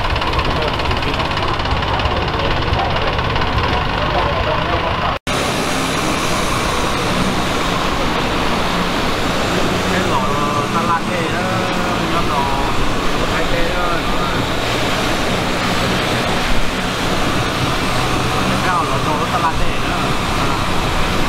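A longtail boat engine drones.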